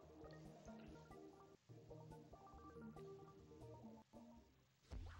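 Light electronic game music plays.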